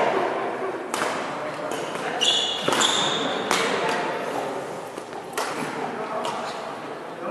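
Badminton rackets smack shuttlecocks in a hall with a faint echo.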